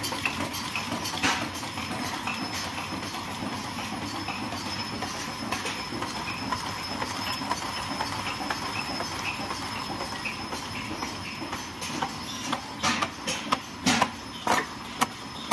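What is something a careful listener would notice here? A packaging machine runs with a steady mechanical clatter.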